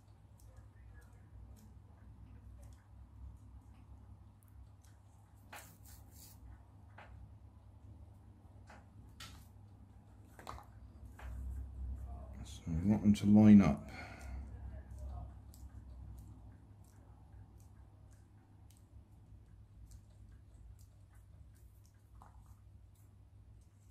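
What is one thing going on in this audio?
Paper strips rustle and tap softly as hands handle them.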